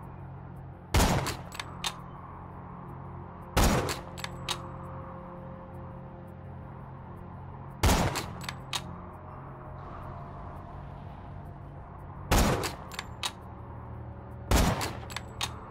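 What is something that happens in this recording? A sniper rifle fires loud single shots that echo away.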